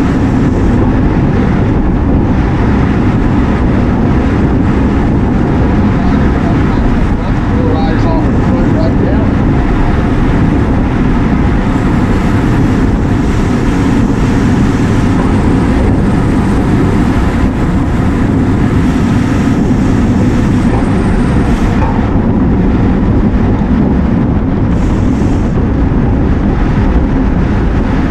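Bicycle tyres hum on the road as a group of cyclists rides along.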